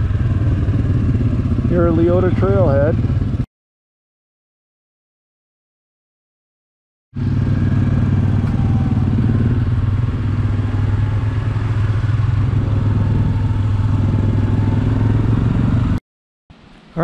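An off-road quad engine rumbles steadily as it rides.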